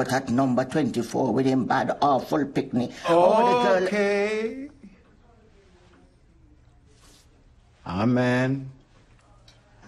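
An elderly man speaks firmly, close by.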